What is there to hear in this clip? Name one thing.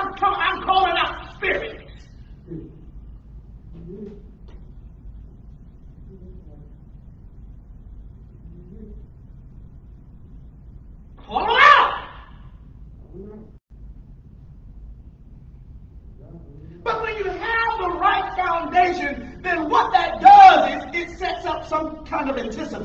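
A man speaks with animation into a microphone in an echoing room.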